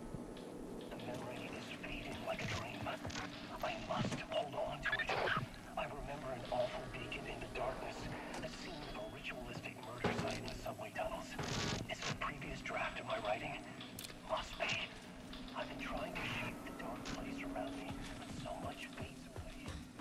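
A young man talks calmly into a microphone close by.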